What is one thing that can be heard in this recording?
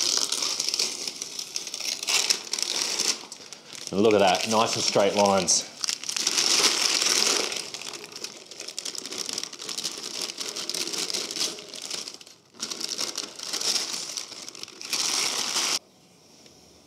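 Masking tape rips and crackles as it is peeled off.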